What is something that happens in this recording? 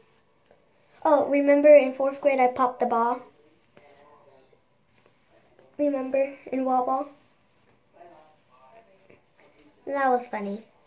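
A young girl talks close by in a lively voice.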